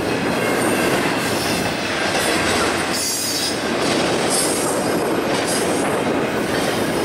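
A long freight train rumbles and clatters past on the tracks.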